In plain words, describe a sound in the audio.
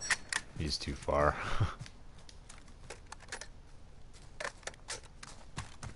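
A rifle rattles and clicks as it is handled.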